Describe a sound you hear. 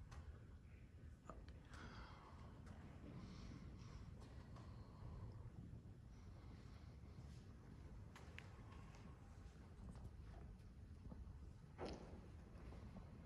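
Soft footsteps tread slowly.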